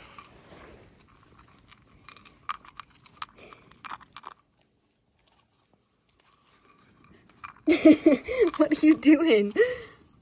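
A puppy laps water from a cup.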